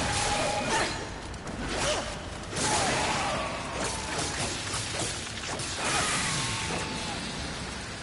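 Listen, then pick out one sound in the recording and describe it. Heavy blows and crashes ring out as a creature is struck in a fight.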